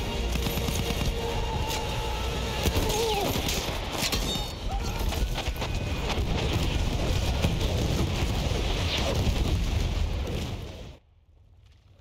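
Gunfire crackles sharply.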